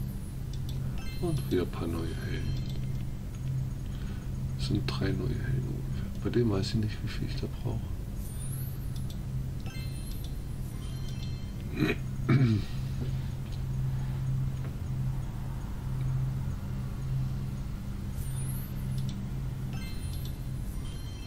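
A bright magical chime rings out.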